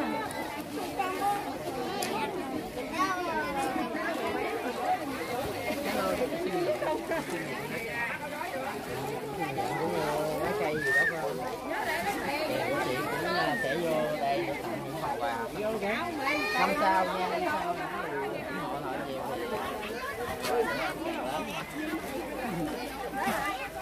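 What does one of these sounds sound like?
A crowd of men and women talk over one another nearby, outdoors.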